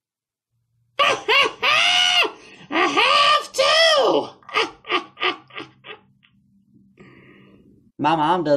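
A young woman talks with animation in a put-on old voice.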